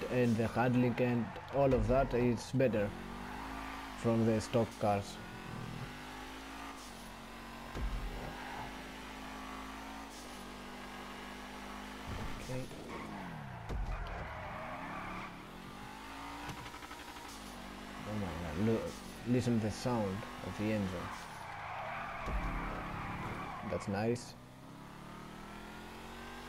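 A race car engine roars steadily, rising and falling in pitch as the car speeds up and slows down.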